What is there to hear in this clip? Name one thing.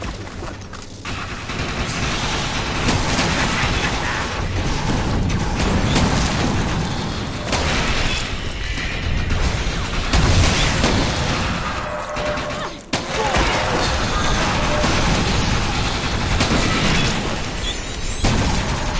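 Guns fire rapidly in loud bursts.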